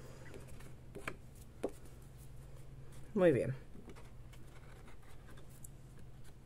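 Stiff paper cards rustle and tap softly.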